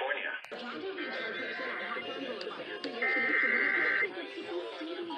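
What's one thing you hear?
A radio sounds shrill alert tones.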